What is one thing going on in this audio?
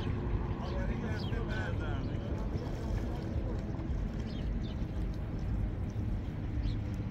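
Hands push seedlings into shallow water with soft splashes.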